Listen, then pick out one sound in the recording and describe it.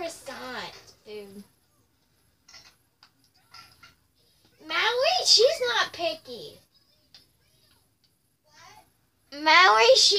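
A young girl talks close by in a high, lively voice.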